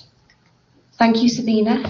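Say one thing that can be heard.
A middle-aged woman speaks calmly over an online call.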